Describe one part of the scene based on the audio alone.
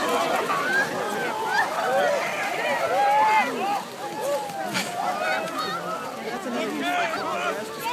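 A crowd of men and women shout and scream excitedly outdoors.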